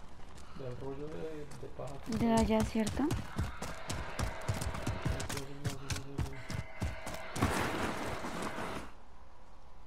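Footsteps run quickly over soft dirt.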